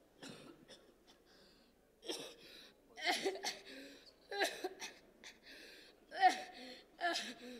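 A young woman cries out in short, strained bursts through a microphone, with pauses in between.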